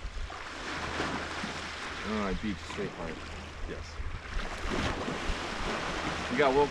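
Wind blows across the open beach.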